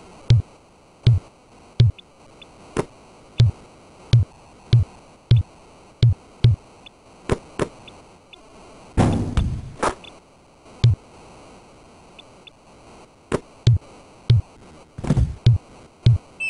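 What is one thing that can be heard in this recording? A basketball bounces on a court with dull, regular thuds.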